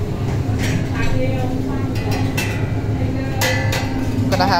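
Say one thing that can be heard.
A metal lid clanks as it is lifted off a serving tray.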